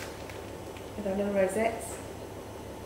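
A middle-aged woman says a few words calmly nearby.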